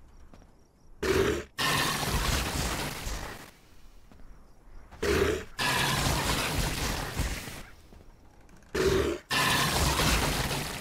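A magic spell bursts with a loud whoosh and crackle, again and again.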